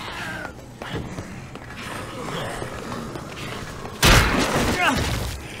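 Zombies groan and moan.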